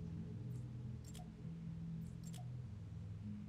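Soft interface clicks sound as a menu selection changes.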